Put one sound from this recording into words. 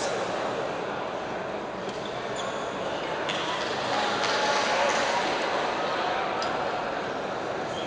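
Many voices of a crowd chatter throughout a large echoing hall.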